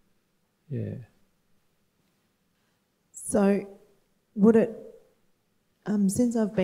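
A woman speaks emotionally into a microphone, close by, with pauses.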